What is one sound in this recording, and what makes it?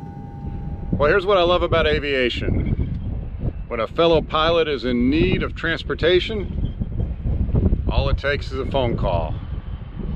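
A middle-aged man talks calmly, close up, outdoors.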